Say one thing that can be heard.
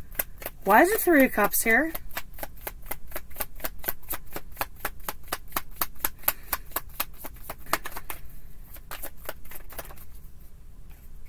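Cards riffle and flutter quickly as they are shuffled.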